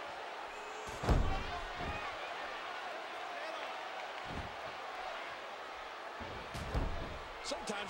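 A body slams heavily onto a wrestling mat with a loud thud.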